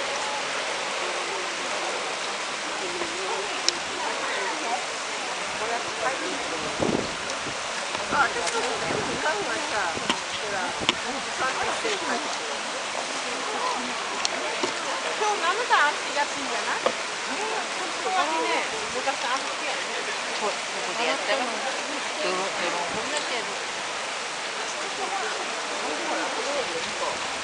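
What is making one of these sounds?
A crowd of people chatters in the distance.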